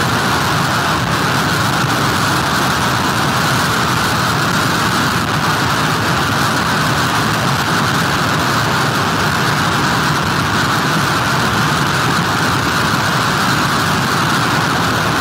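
Heavy surf crashes and rumbles onto the shore.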